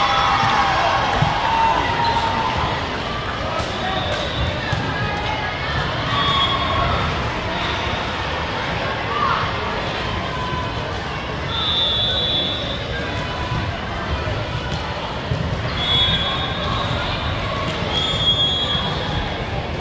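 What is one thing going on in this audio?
A crowd of girls and women chatter and call out, echoing in a large hall.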